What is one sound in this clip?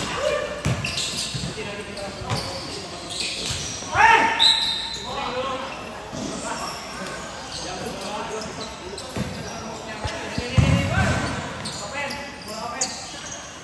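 Young men shout and call out to each other during a game.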